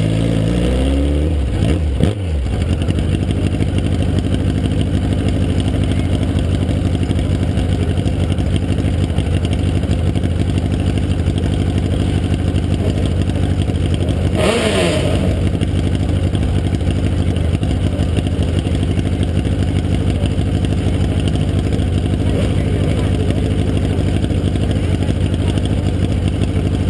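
A race car engine idles loudly close by with a steady low rumble.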